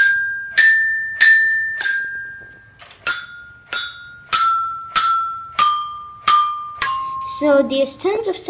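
A toy robot strikes xylophone bars, ringing out a slow falling run of bright notes.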